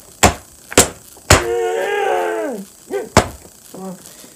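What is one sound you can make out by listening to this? A plastic bottle crinkles and slaps sharply.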